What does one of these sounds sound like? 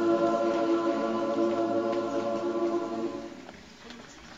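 A youth choir sings a held chord in a hall, then falls silent.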